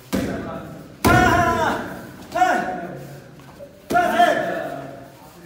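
A man shouts loudly with each kick.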